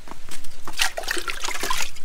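Water splashes in a bucket.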